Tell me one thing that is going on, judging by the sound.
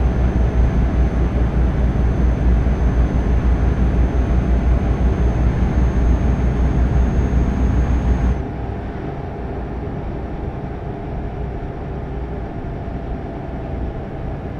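A truck engine drones steadily at cruising speed.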